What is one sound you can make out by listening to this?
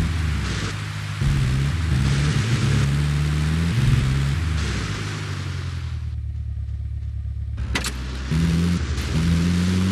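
A vehicle engine hums and revs steadily.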